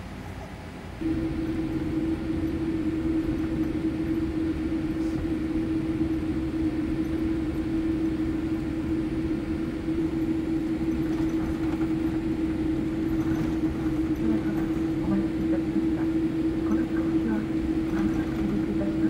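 Wheels rumble and thump over the runway.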